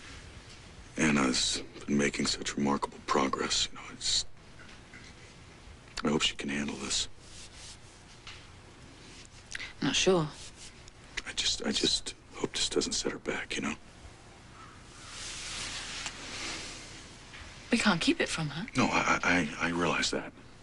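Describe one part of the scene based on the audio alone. A woman speaks softly and emotionally close by.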